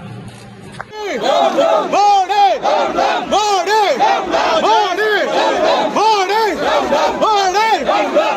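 A man chants slogans loudly up close.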